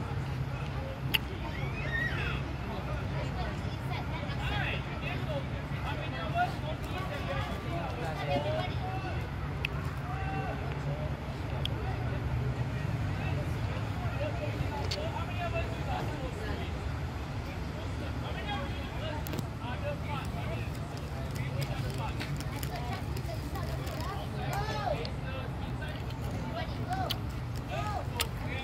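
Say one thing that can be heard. Young children shout and chatter across an open field.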